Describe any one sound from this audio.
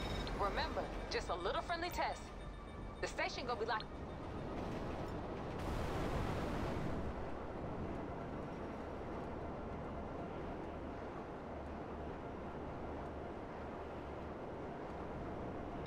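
A jet-powered hoverbike engine roars steadily.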